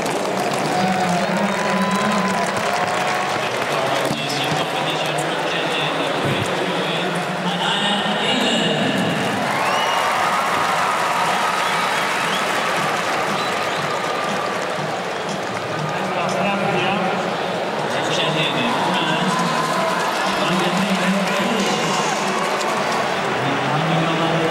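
A large stadium crowd murmurs and roars throughout.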